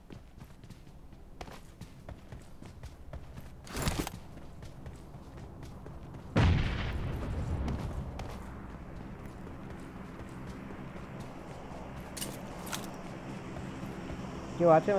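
Footsteps patter quickly on ground and grass.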